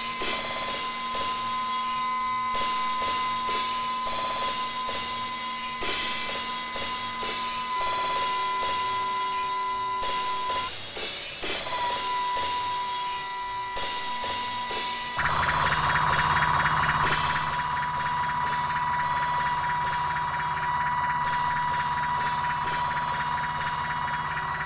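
An electronic drum machine plays a looping beat with synth tones.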